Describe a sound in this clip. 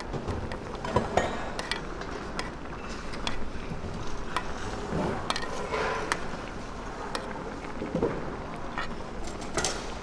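A metal spoon scrapes and taps against a pan.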